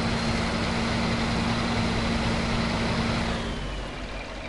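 A heavy truck engine roars loudly under strain.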